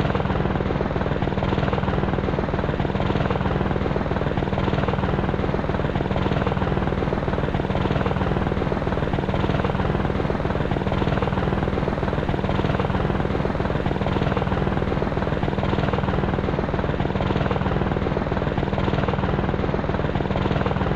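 A helicopter's engine whines and its rotor blades thump steadily close by.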